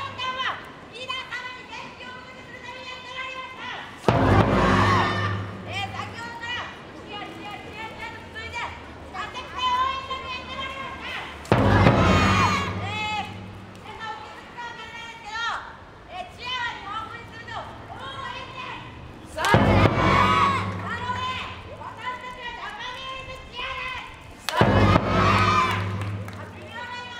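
A group of people on a stage shout cheers loudly in unison, in an open echoing space.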